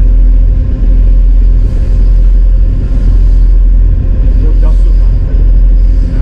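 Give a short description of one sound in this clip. A boat engine rumbles loudly and steadily.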